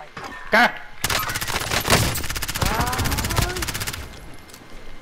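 A gun fires rapid bursts of automatic shots.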